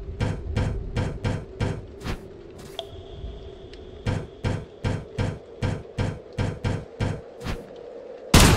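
Game footstep sounds tap in an even rhythm as a character climbs a ladder.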